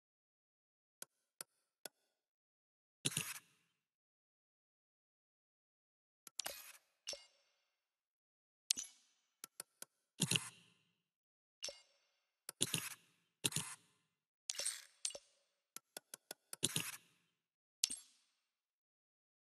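Short electronic menu clicks and swooshes sound now and then.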